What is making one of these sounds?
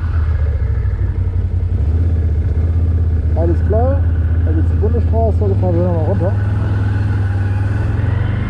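Tyres rumble over paving stones.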